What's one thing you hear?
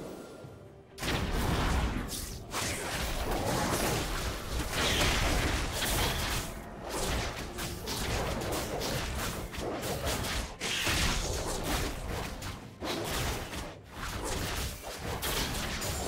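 Video game spell effects crackle and thump during a fight.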